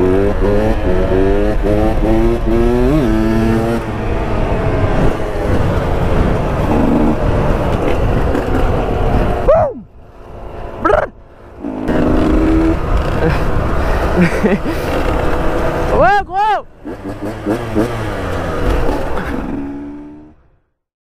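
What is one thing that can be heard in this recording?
A dirt bike engine revs loudly up close, rising and falling in pitch.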